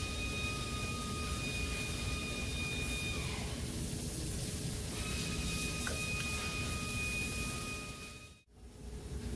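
A small power tool whirs steadily.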